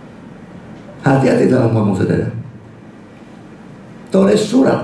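An older man speaks calmly into a microphone, heard through a loudspeaker in a room.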